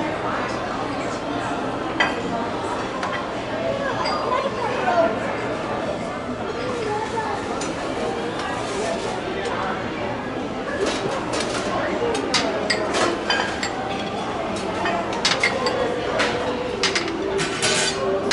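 Serving utensils clink and clatter against metal trays.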